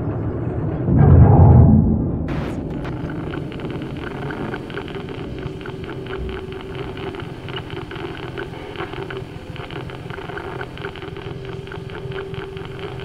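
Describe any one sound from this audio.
An old monitor switches on with a sudden burst of static and then buzzes.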